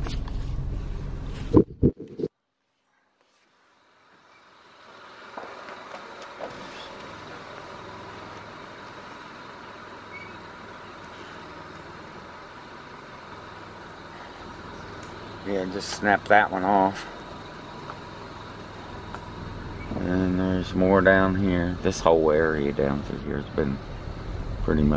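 A car engine rumbles as the car drives along a road.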